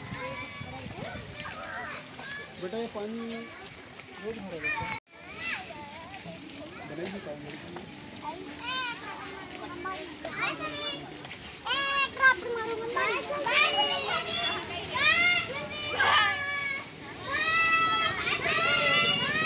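Children chatter and call out nearby outdoors.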